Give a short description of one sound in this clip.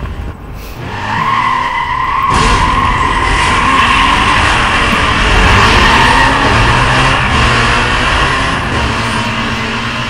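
A race car engine accelerates hard and roars steadily.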